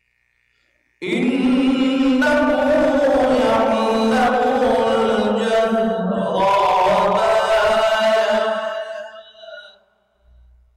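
A man chants loudly and melodically into a microphone in an echoing hall.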